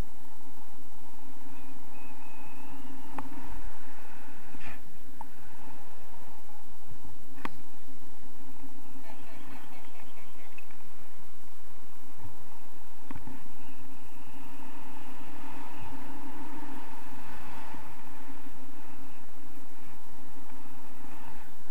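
Strong wind rushes and buffets steadily outdoors.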